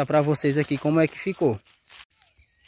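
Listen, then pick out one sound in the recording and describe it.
A young man speaks calmly, close up.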